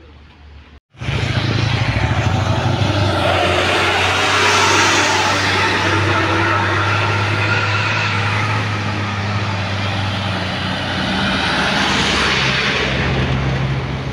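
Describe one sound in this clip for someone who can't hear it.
A heavy truck engine rumbles loudly as the truck drives past.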